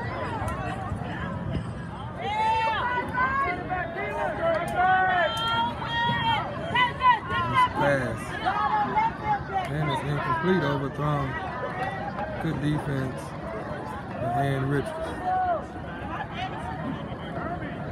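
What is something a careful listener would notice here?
Nearby spectators chatter in the background.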